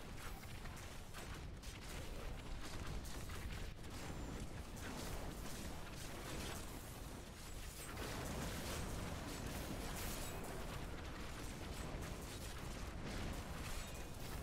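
Fiery blasts and explosions roar and crackle steadily.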